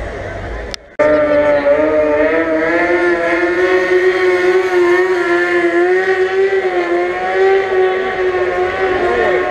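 A racing motorcycle engine roars past on the track.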